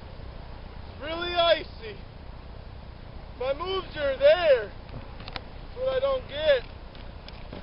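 A young person calls out loudly outdoors in several short bursts.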